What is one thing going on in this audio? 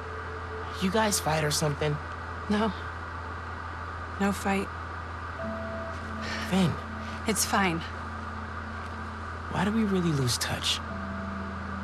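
A young man speaks quietly and hesitantly.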